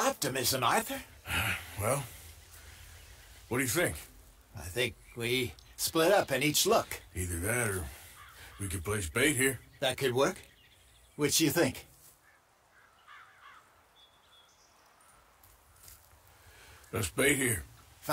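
A man speaks in a low, rough voice, thoughtfully.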